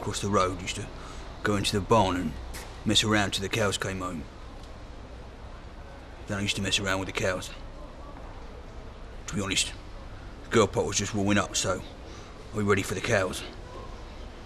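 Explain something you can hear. A young man speaks close by, in a slow deadpan voice, with pauses.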